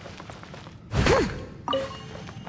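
Rocks crack and crumble under heavy sword blows.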